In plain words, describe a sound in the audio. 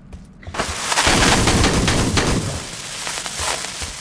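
A rifle fires a rapid, loud burst of shots.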